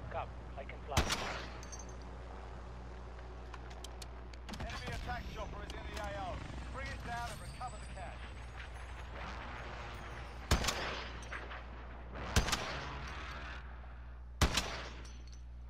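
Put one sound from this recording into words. Sniper rifle shots crack loudly, each followed by a ringing echo.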